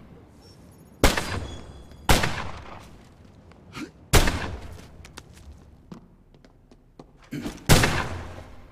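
A gun fires sharp shots with a short echo.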